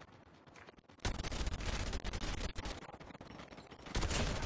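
Rapid gunshots crack.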